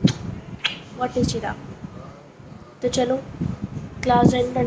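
A young girl talks close to the microphone.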